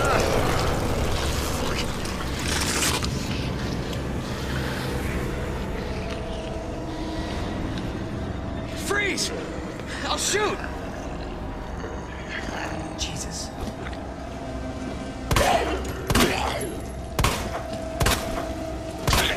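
A zombie growls and groans.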